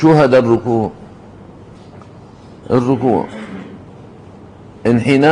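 An elderly man speaks slowly and deliberately into a microphone, with pauses.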